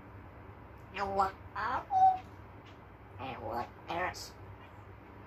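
A parrot chatters in a voice-like babble.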